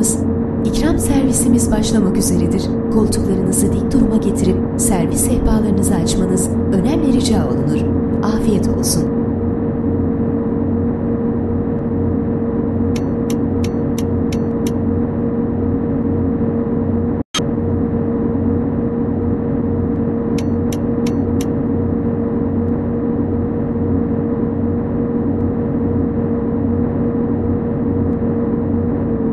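A bus engine drones steadily at speed.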